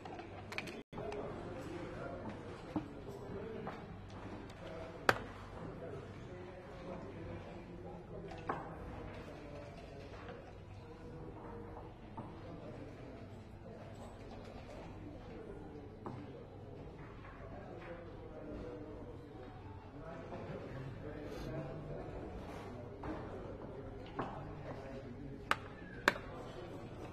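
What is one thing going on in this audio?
Game pieces click and slide on a wooden board.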